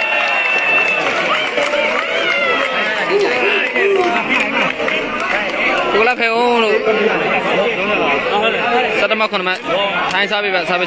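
A large crowd outdoors chatters and cheers loudly.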